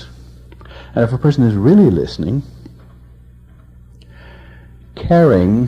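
An elderly man speaks calmly and expressively into a microphone, with pauses between phrases.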